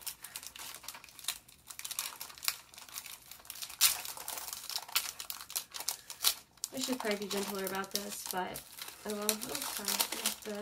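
Paper and plastic packaging rustle and crinkle under handling.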